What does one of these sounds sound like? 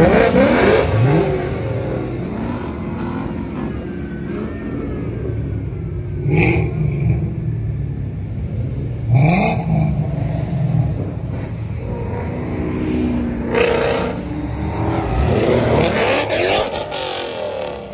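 A sports car engine revs loudly in short bursts.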